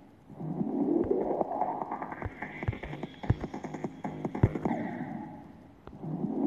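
Upbeat electronic game music plays with a steady thumping beat.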